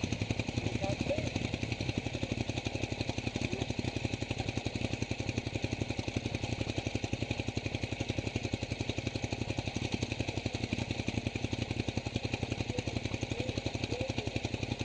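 A motorcycle engine idles with a fast, steady throb.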